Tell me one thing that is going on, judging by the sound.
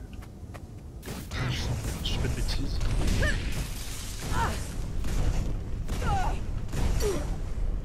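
Fiery magic bursts crackle and whoosh in a fight.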